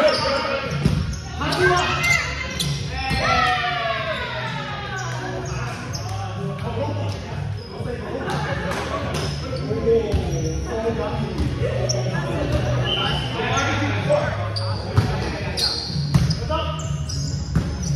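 Players' shoes squeak sharply on a hard floor in a large echoing hall.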